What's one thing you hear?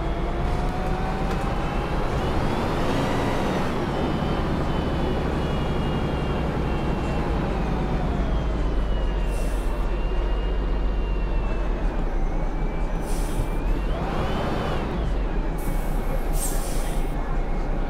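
A bus engine drones and whines, its pitch rising and falling as the bus speeds up and slows down.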